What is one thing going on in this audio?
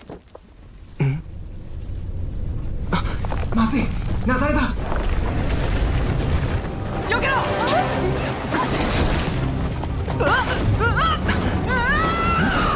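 A strong wind rushes and roars.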